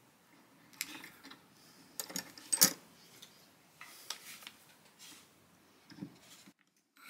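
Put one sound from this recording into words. Small metal parts click and knock against wood.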